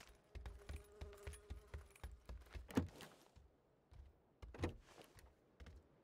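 A wooden door creaks open.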